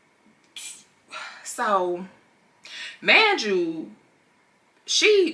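A young woman speaks close by with animated, surprised exclamations.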